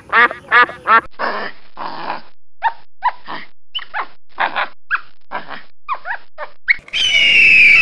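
A monkey chatters in quick, sharp calls.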